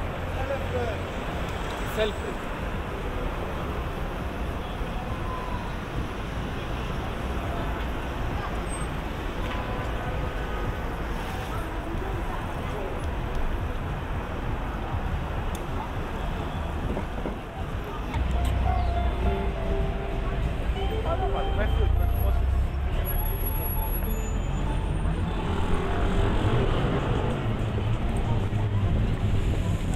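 Outdoors, a busy city street hums with distant traffic and crowd noise.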